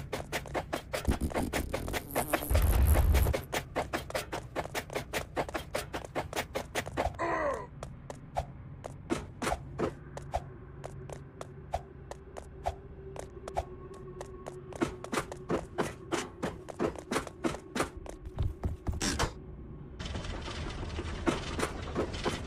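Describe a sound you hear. Quick footsteps patter steadily on stone.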